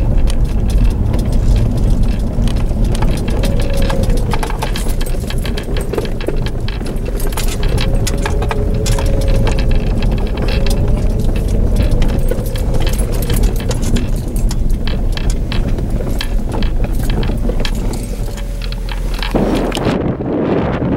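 Tyres crunch and crackle over gravel.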